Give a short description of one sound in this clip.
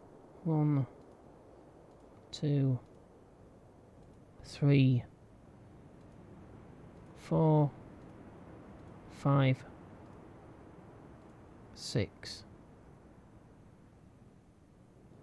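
Ocean waves wash and churn steadily.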